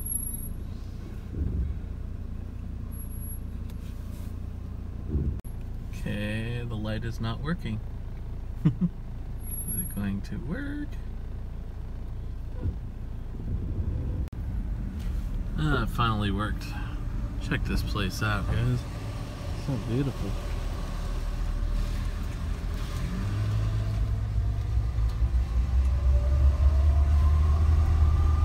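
A car engine hums with a low road rumble as the car drives along.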